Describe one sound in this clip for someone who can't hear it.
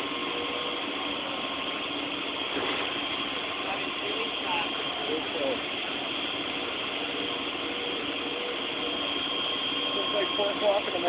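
Fire hoses spray water in a steady hiss.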